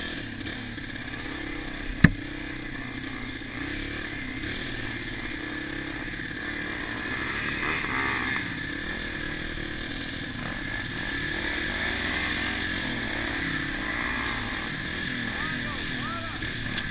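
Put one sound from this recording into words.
Water splashes under the tyres through puddles.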